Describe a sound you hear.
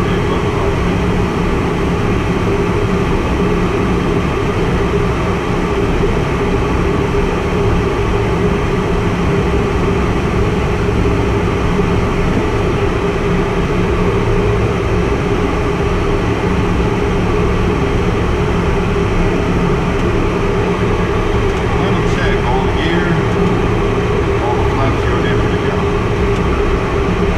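Wind rushes past the cockpit.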